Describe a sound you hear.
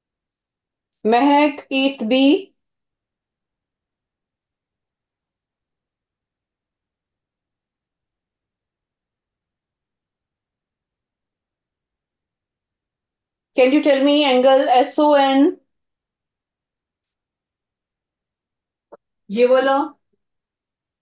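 A woman speaks calmly through a microphone in short bursts.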